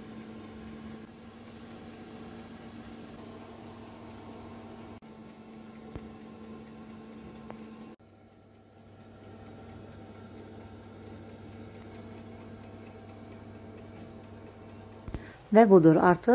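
An oven fan hums steadily.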